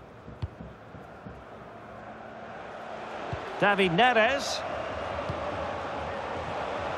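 A stadium crowd roars, swelling louder.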